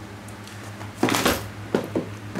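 A bag thumps down onto a wooden floor.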